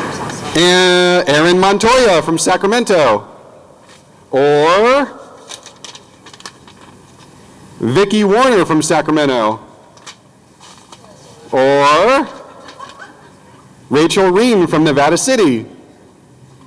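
A middle-aged man speaks with animation through a microphone and loudspeakers outdoors, in bursts with pauses.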